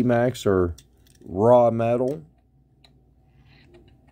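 A small toy car clicks down onto a hard plastic stand.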